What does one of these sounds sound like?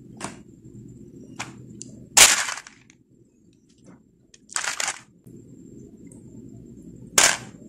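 Plastic beads click and rattle softly as they are handled.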